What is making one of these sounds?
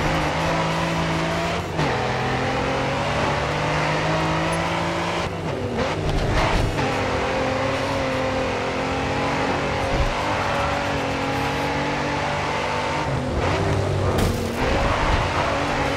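A sports car engine revs hard at full throttle.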